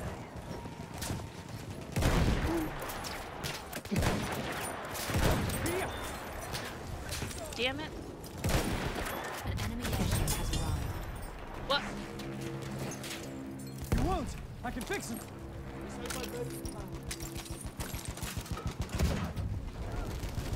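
Gunfire and explosions boom and crack across a battlefield.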